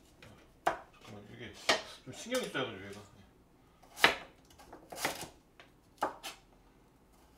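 A knife chops through an onion onto a cutting board.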